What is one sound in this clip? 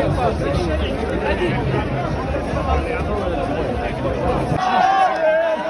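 A large crowd chatters and cheers outdoors.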